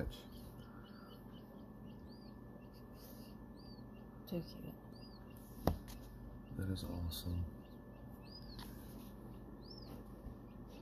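Newly hatched chicks peep softly now and then.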